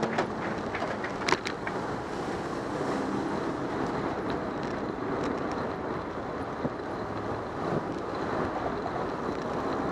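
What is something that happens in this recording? Bicycle tyres hum and rattle over the road.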